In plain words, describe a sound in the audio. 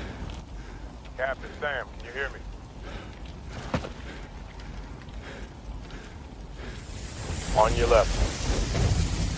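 A man speaks quietly and wearily, close by.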